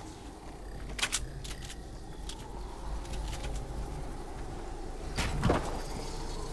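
Building pieces snap into place with sharp clicks.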